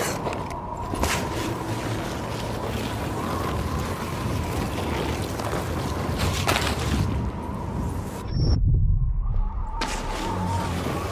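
A body slides fast down ice with a rushing scrape.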